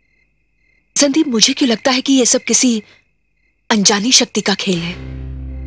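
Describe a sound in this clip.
A young woman speaks tensely up close.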